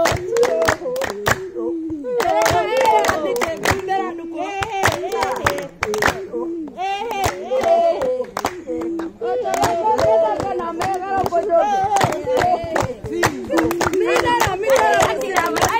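A group of women sing together.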